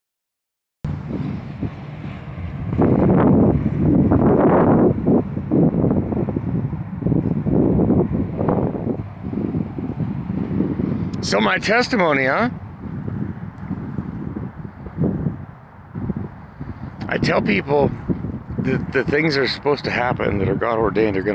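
Wind blusters against the microphone outdoors.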